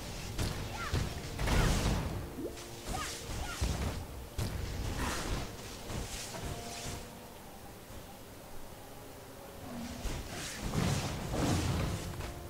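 Magic spells burst and crackle with loud whooshing blasts.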